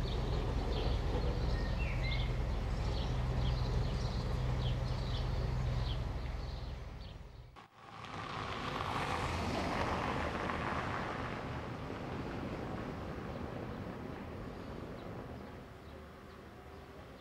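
A tram rumbles along rails toward the listener.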